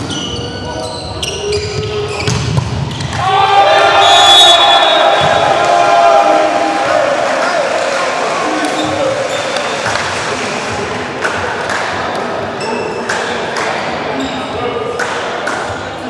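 Sneakers squeak on the hard court floor.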